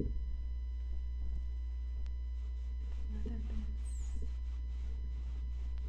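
A cloth rubs over a leather bag with soft repeated swishes.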